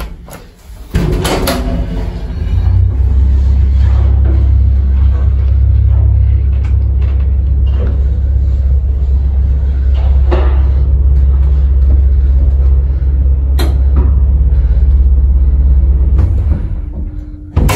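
An elevator rumbles and hums low and steady as it travels.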